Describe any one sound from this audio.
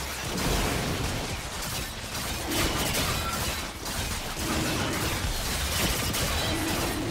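Game spell effects whoosh and crackle as characters fight a dragon.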